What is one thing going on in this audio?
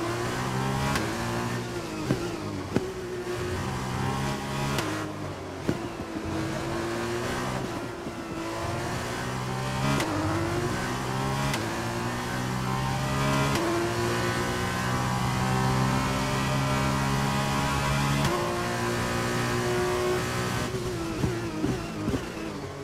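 Gears shift with sharp clicks.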